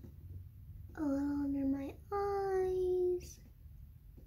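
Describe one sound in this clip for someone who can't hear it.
A young girl sings two long, drawn-out notes close by.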